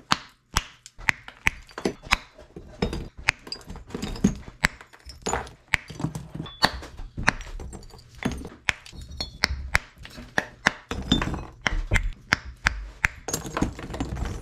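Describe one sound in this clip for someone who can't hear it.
Pliers snap and crack pieces of brittle plaster.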